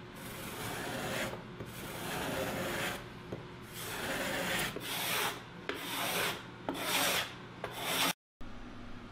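A metal scraper scrapes across a wooden board in short repeated strokes.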